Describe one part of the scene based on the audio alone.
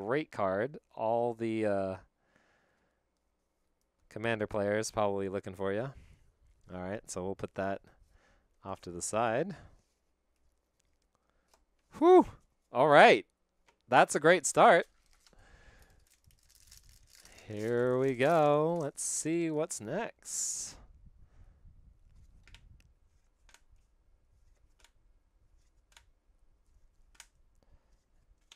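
Playing cards slide and tap softly against each other.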